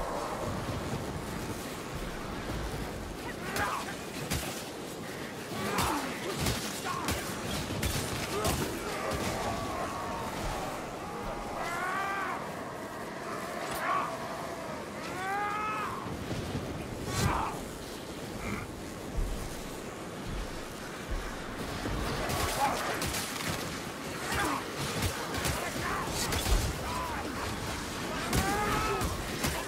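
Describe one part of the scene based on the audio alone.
Weapons strike and slash against creatures in rapid, repeated blows.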